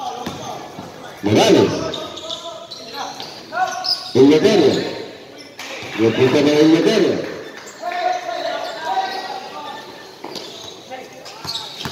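Men shout loudly in a large echoing hall.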